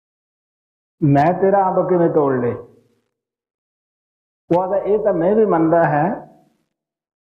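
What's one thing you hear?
An elderly man speaks calmly in two short phrases, close by.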